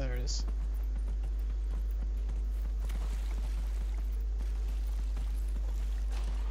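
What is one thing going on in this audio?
Hooves thud steadily as a horse gallops.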